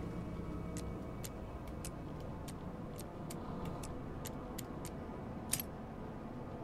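A combination padlock dial clicks as it turns.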